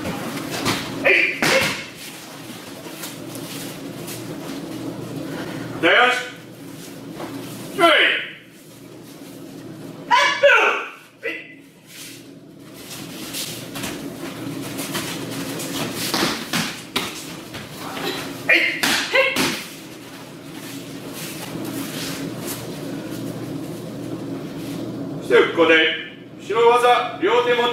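Men shout short, sharp cries during practice.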